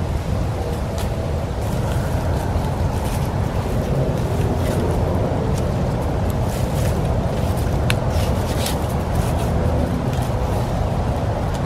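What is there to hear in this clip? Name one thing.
Sticks knock and scrape together close by.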